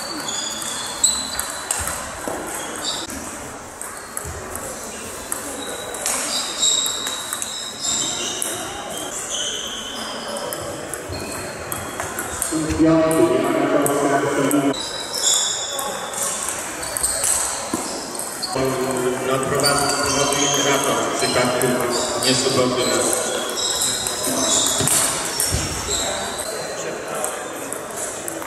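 Shoes squeak on a hall floor.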